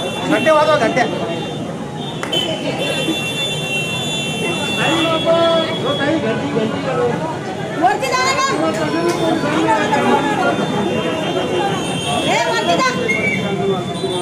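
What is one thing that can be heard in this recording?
Several women chant slogans loudly together outdoors.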